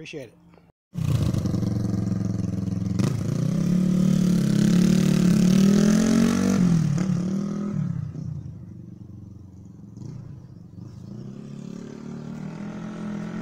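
A motorcycle engine rumbles loudly, revs up, then fades into the distance.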